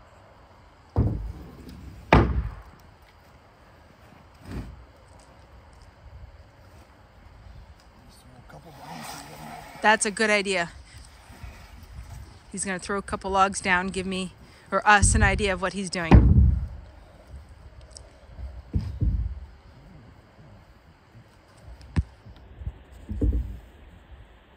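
Heavy timbers thud and knock against wood.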